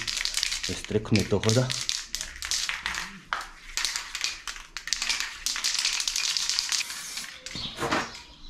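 An aerosol can sprays in short, hissing bursts close by.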